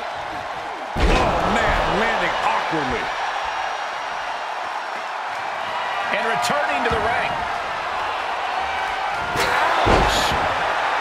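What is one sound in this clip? A wrestler's body slams onto a ring mat with a heavy thud.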